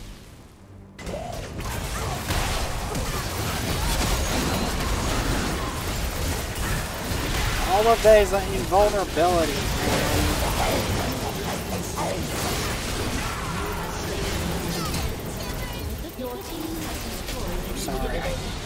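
Spell effects and hits crackle and burst in a busy game battle.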